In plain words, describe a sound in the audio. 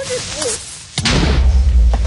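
A blow lands with a sharp thud.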